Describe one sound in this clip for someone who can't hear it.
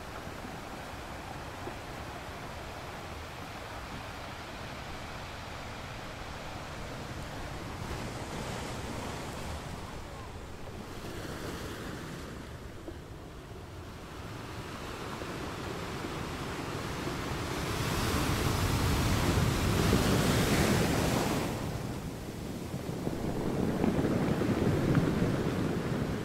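Waves crash and roar against rocks.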